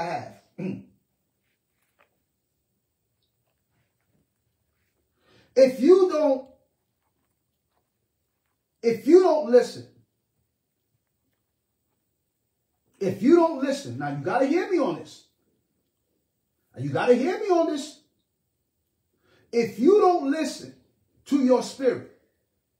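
A middle-aged man speaks close to a microphone in short, emphatic bursts with long pauses between them.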